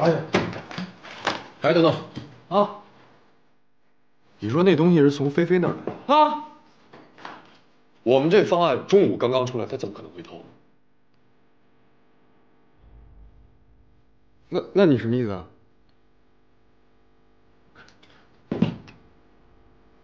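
A young man speaks tensely and firmly, close by.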